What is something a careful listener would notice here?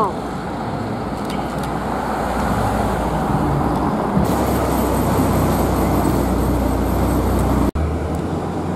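A car engine rumbles low while driving slowly through traffic.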